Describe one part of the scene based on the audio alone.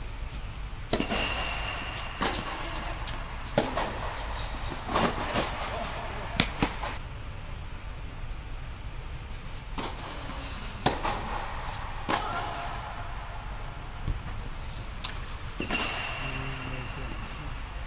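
Tennis shoes squeak on the court.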